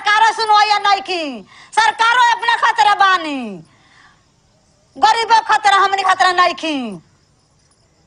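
An elderly woman speaks with emotion, close up.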